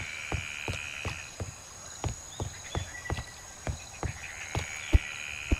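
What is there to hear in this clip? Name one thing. Footsteps thud steadily on wooden boards and ground.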